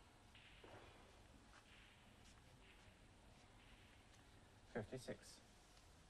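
A snooker ball is set down on the table's cloth with a soft knock.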